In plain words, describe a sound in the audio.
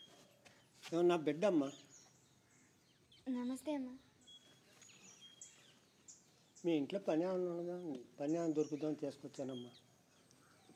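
An elderly man speaks softly.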